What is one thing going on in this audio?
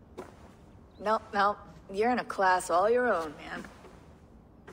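A woman speaks firmly.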